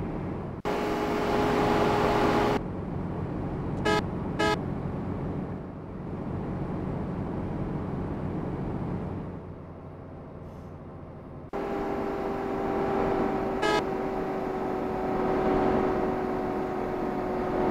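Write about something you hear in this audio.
A bus engine hums steadily, growing louder at times.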